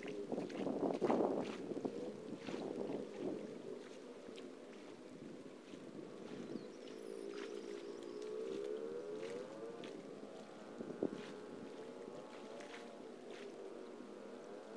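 Water splashes as a person wades through a shallow stream some distance away.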